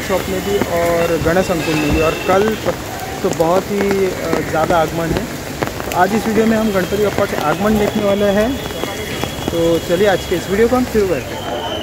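Rain patters on an umbrella.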